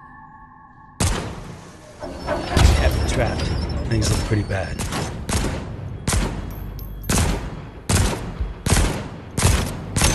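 Pistol shots ring out again and again, loud and sharp.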